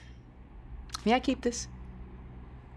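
A woman speaks with concern.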